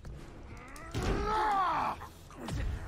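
A man grunts and shouts in a strained voice as he struggles.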